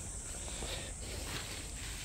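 Lettuce leaves rustle softly under a hand.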